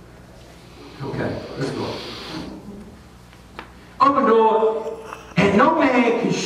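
An elderly man speaks with emphasis over a microphone in a room with some echo.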